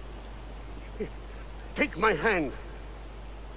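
An elderly man speaks in a low, calm voice.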